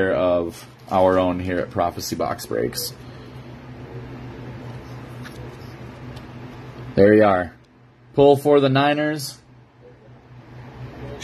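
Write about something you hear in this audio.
A plastic card case rustles and clicks in hands.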